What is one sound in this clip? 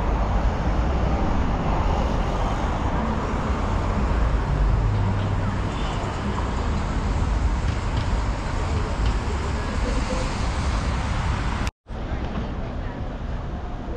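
City traffic rumbles steadily nearby, outdoors.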